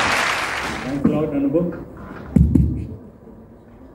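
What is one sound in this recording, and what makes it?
A man speaks briefly into a microphone over loudspeakers in a large hall.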